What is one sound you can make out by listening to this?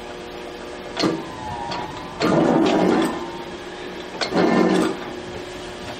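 A mechanical press brake bends a steel plate with a heavy metallic clatter.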